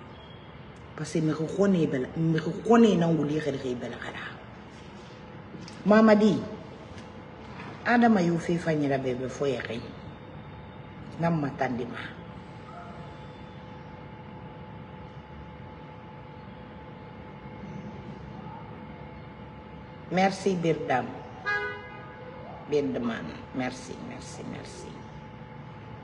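A woman speaks emotionally into a nearby microphone, in bursts with long pauses.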